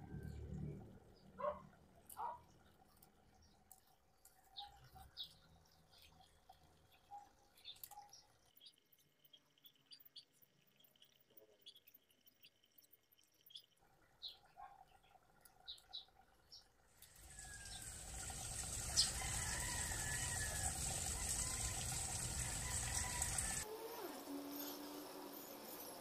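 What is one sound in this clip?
Leaves rustle softly as fingers pluck at a small shrub.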